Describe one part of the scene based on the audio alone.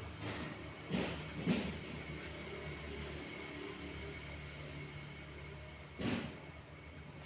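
A tree's roots knock and scrape against a rock.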